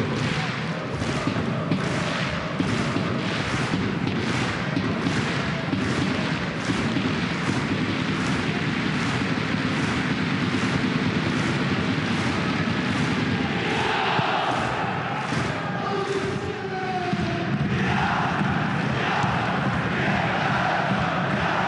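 A large stadium crowd chants loudly.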